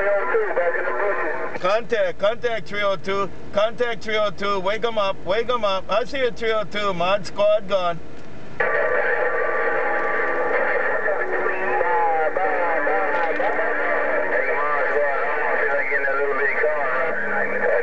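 Radio static hisses and crackles steadily.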